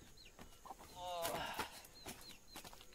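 A hen clucks nearby.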